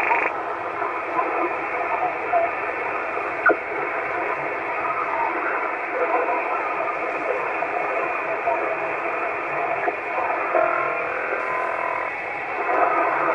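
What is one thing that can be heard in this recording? A radio receiver hisses and crackles with static through a small loudspeaker.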